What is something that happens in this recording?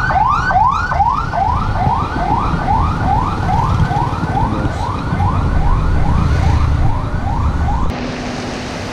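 A small motor engine rumbles and putters up close.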